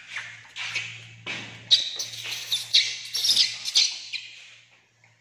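A small animal shuffles and scrapes against a plastic chair.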